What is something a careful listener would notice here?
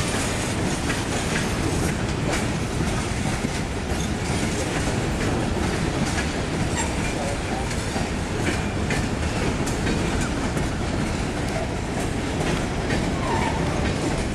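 A diesel engine idles nearby.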